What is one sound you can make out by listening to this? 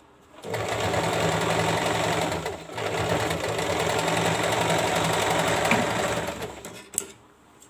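A sewing machine whirs steadily, pausing briefly.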